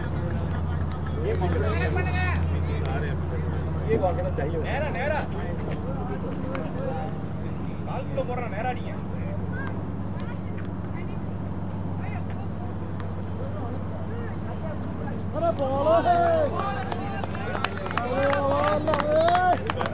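Men call out to each other outdoors at a distance.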